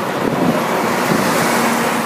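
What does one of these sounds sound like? A bus rumbles past close by.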